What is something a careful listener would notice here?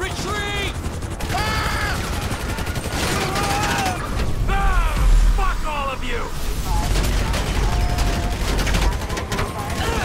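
Rapid gunfire rattles out in bursts.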